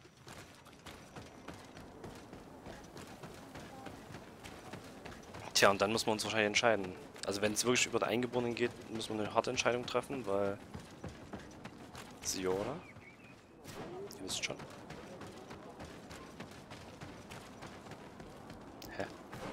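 Footsteps run over dirt and wooden planks.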